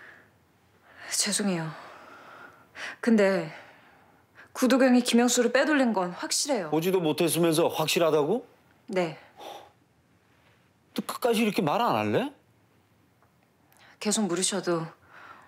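A young woman speaks quietly and hesitantly nearby.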